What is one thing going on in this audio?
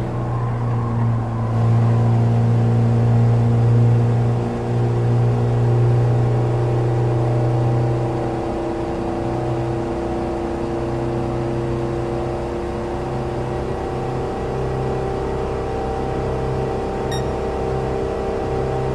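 A small car engine drones steadily at high revs.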